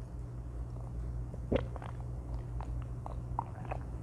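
A young woman sips from a mug.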